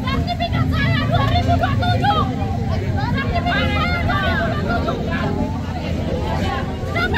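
A woman shouts loudly with excitement.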